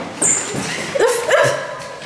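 Footsteps pass nearby on a hard floor.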